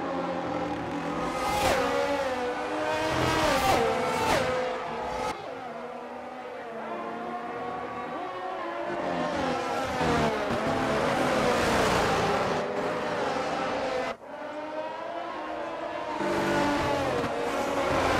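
Racing car engines scream at high revs, rising and falling in pitch as they shift gears.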